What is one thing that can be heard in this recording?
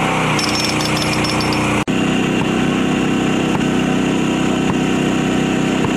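An angle grinder screeches as it cuts into brick.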